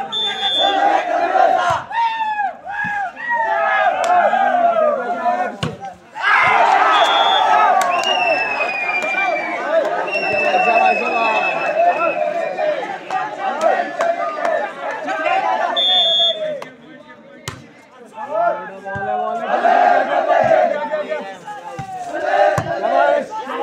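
Young men shout to each other on a court.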